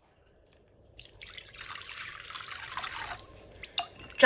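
Water pours from a tap into a bowl.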